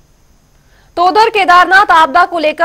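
A young woman speaks clearly into a microphone, reading out the news.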